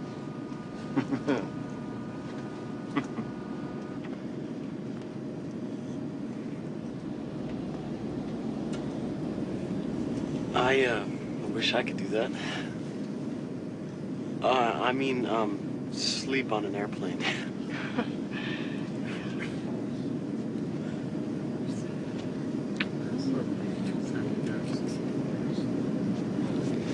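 A steady low engine drone hums throughout.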